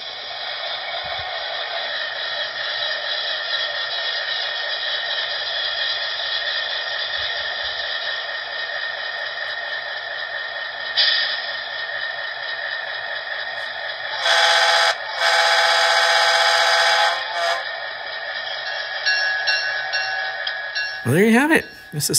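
A model diesel locomotive's engine sound idles with a steady rumble from a small speaker.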